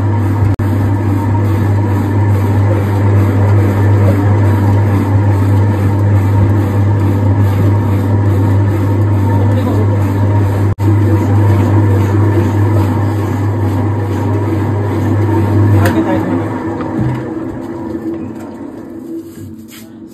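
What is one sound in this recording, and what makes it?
A machine's motor hums loudly as a drum spins fast, then slowly winds down.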